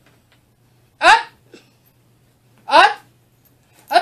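A dog barks nearby.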